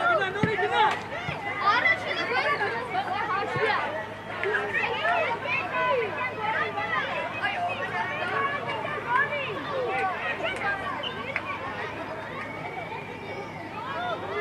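Children shout and call out to each other.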